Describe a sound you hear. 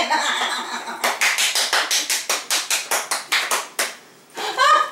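A young woman claps her hands rapidly.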